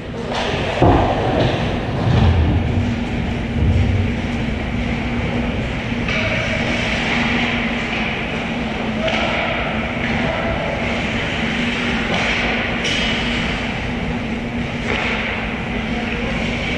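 Ice skates scrape and carve across the ice in a large echoing rink.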